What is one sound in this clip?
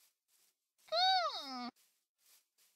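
A short electronic swooping tone sounds.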